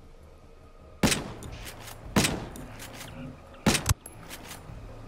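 Rifle shots crack sharply in quick bursts.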